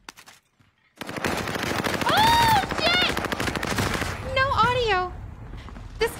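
A young woman shrieks and laughs loudly.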